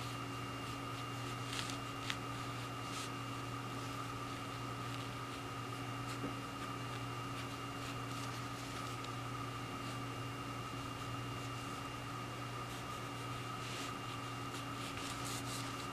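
A brush softly dabs and brushes across paper.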